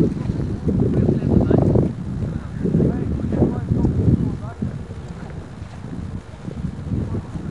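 A crowd of men and women chatter and call out outdoors.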